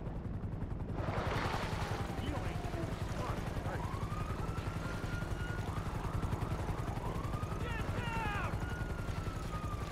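Water splashes as a swimmer paddles along.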